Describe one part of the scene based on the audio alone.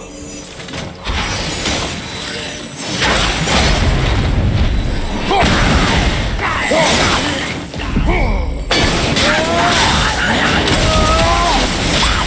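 A warrior fights creatures with heavy blows and clashing metal.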